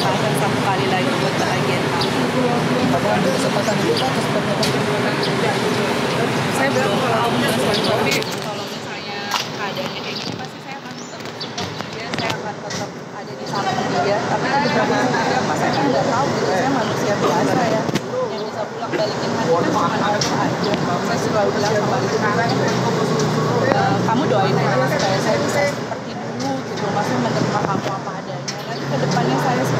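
A middle-aged woman talks with animation close to a microphone.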